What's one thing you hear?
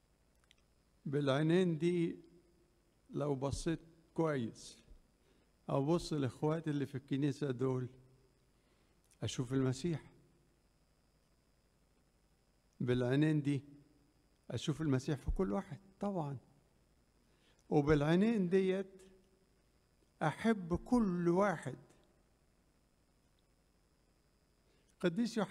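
An elderly man speaks calmly into a microphone in short bursts, with pauses between phrases.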